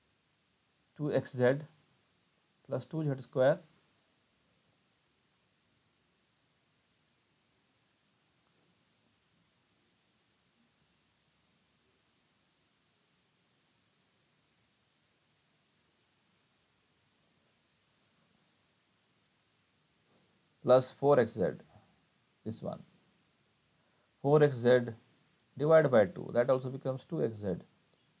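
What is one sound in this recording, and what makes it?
A middle-aged man speaks calmly into a microphone, explaining, with long pauses.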